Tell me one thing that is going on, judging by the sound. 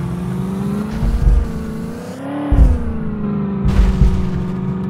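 Heavy tyres thump over bumps.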